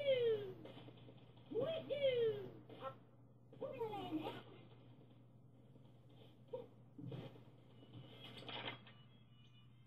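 Video game sound effects chirp and swoop from a television loudspeaker.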